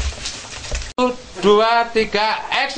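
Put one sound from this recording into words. A young woman speaks with animation to others nearby.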